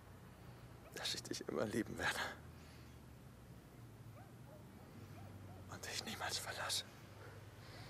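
A young man speaks softly and warmly.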